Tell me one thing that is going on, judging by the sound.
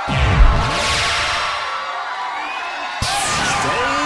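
Fast electronic dance music plays loudly.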